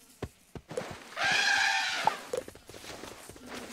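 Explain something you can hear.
A winged creature lets out a shrill cry.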